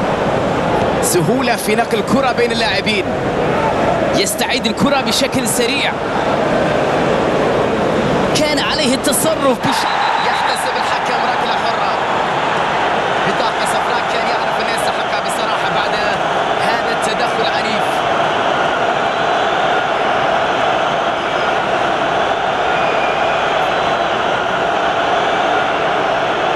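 A large stadium crowd roars and cheers steadily throughout.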